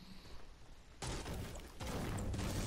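A pickaxe strikes wood with dull thuds.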